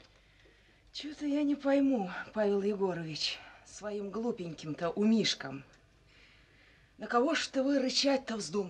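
A middle-aged woman speaks close by with emotion, her voice rising.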